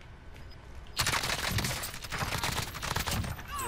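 A rifle fires rapid shots close by.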